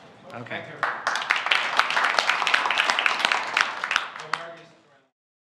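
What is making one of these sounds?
A small audience claps.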